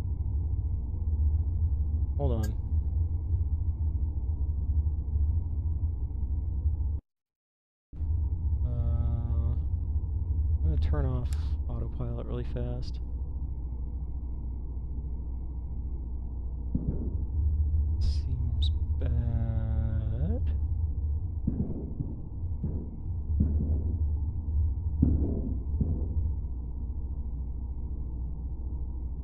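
A spaceship's engine hums low and steadily.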